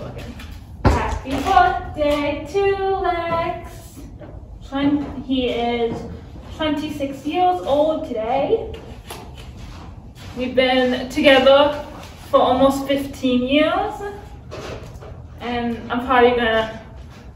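A woman talks calmly and cheerfully nearby.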